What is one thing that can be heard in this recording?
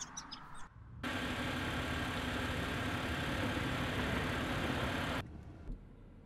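A car's engine and tyres hum steadily, heard from inside as it drives.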